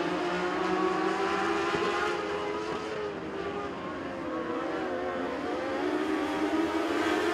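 Race car engines roar loudly, rising and falling in pitch.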